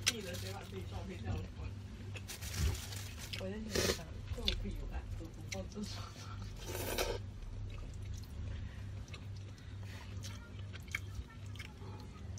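A young woman slurps and chews food up close.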